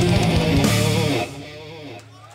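A rock band plays loudly through loudspeakers.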